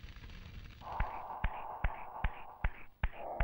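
Footsteps thud evenly on a stone floor in an echoing hall.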